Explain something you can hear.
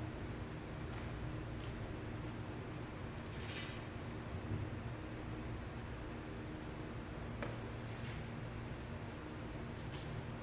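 Metal and glass vessels clink softly as they are handled.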